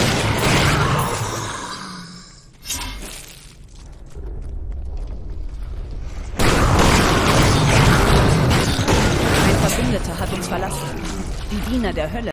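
Magic spells blast and crackle in a fierce fight.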